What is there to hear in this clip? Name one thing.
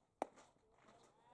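A baseball smacks sharply into a catcher's mitt.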